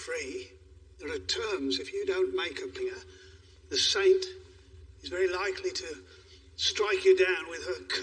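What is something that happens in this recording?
An elderly man answers in a low, calm voice nearby.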